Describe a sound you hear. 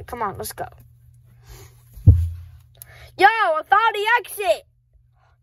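A hand squeezes and rustles a soft plush toy.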